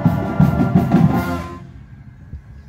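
A brass marching band plays loudly outdoors.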